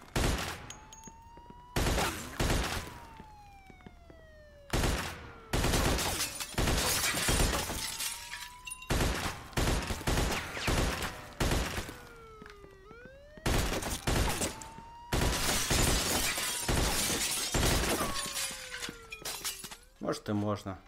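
Glass shatters and objects clatter as bullets hit them.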